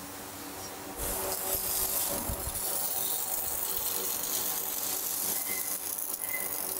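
A robotic welder crackles and hisses steadily.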